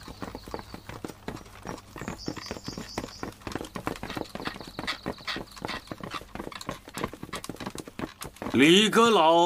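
Footsteps shuffle quickly over hard ground.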